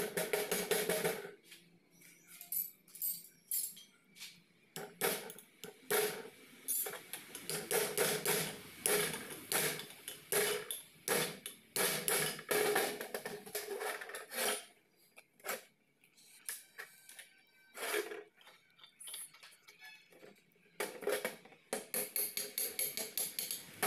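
Metal parts clink and scrape against each other.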